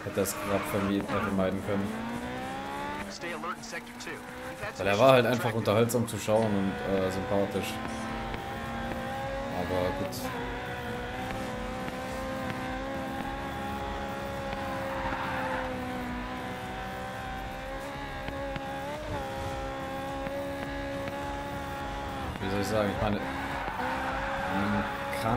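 A racing car engine roars and revs up through the gears.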